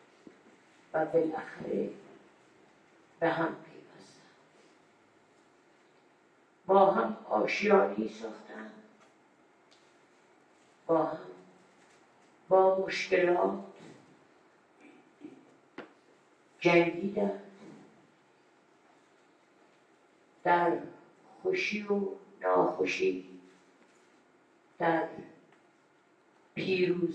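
An elderly woman speaks slowly into a microphone, in bursts with pauses.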